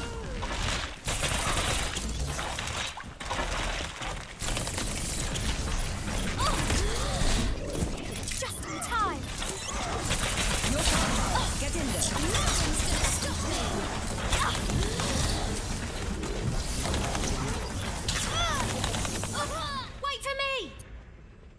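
Twin pistols fire rapid bursts in a video game.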